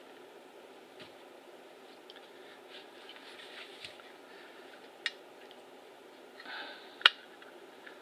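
Metal parts of a lock mechanism click and clank as they are handled.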